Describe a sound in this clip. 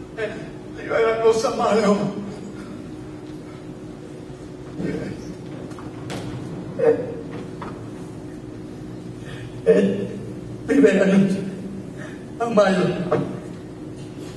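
A young man wails and sobs loudly.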